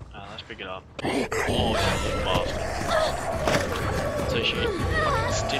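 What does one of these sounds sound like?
A zombie growls and snarls loudly.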